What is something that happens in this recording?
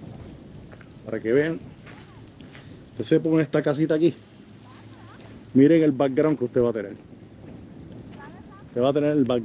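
Small waves lap softly on a sandy shore.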